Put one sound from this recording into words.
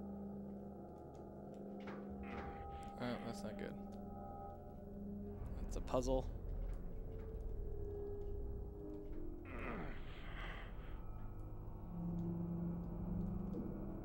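Game music plays with a low, steady hum.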